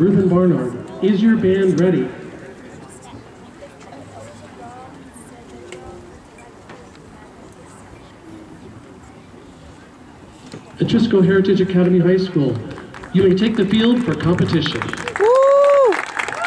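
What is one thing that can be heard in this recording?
A marching band plays loud brass chords outdoors, pausing in between.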